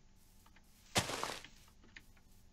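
Leaves rustle and crunch as a block of foliage breaks.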